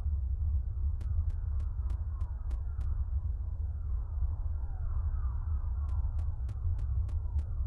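Quick light footsteps tap across a floor.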